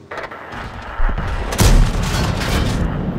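A tank cannon fires with a heavy boom.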